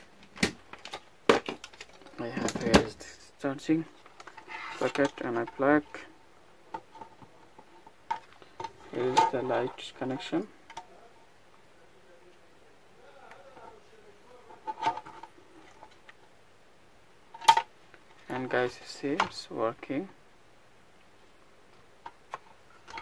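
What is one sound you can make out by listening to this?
Plastic parts click and tap as hands handle them close by.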